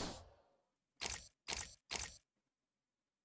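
A menu chimes three times in quick succession.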